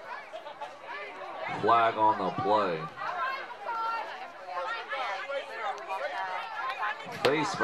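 A crowd of spectators and players chatter and shout outdoors.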